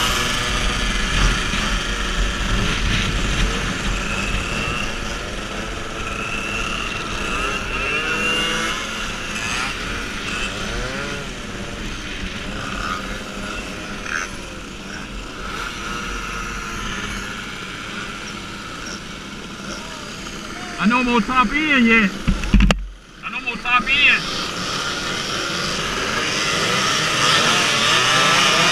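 Many scooter engines buzz and whine close by, rising and falling in pitch as they rev.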